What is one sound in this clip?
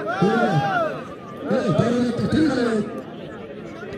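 A man announces loudly through a microphone outdoors.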